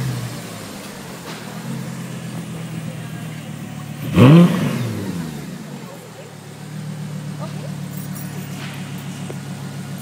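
A sports car engine idles with a deep, throbbing rumble close by.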